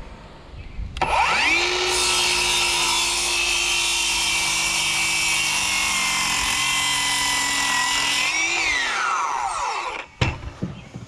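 A circular saw whines loudly as it cuts through a wooden board.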